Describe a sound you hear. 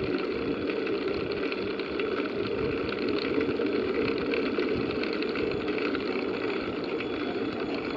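Wind rushes and buffets against the microphone.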